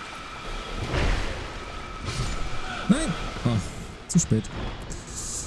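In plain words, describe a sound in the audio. A sword swings and strikes with sharp thuds.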